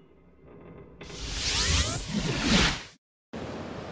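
Water splashes as someone dives in.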